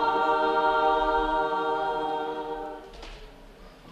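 A women's choir sings a long held chord in an echoing hall, then falls silent.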